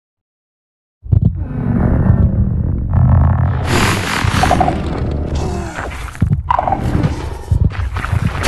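A huge monster growls with a deep, rumbling roar.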